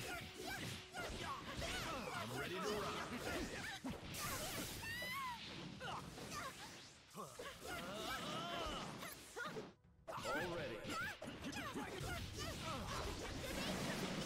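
Electric crackling buzzes in short bursts.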